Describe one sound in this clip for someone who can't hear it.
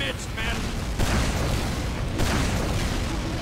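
A heavy gun fires in bursts.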